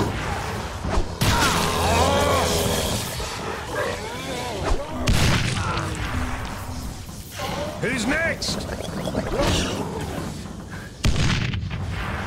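Zombies growl and snarl.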